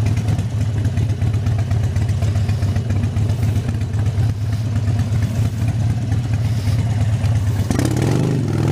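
A motorcycle engine idles with a deep, uneven rumble.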